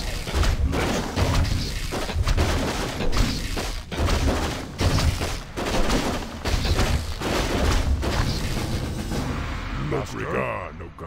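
Metal weapons clash and clang rapidly in a fierce battle.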